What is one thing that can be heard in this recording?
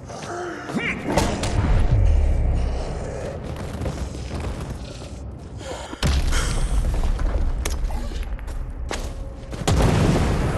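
A wooden club strikes bodies with heavy thuds.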